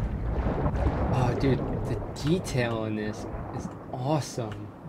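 A man speaks calmly into a close microphone.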